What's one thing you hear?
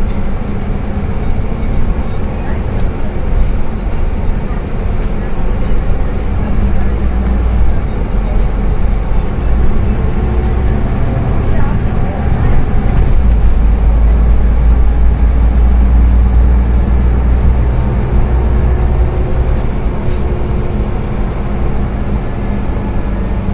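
Tyres roll on the road and the bus rattles.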